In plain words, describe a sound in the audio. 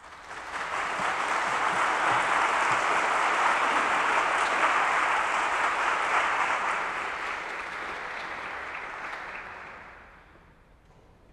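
An audience applauds loudly in a large hall, and the applause dies away.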